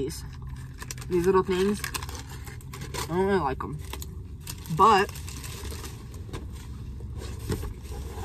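Paper food wrapping crinkles.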